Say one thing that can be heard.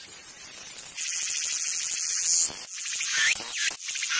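A cicada buzzes close by.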